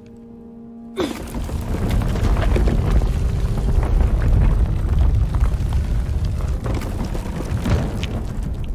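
Heavy stone machinery rumbles and grinds loudly.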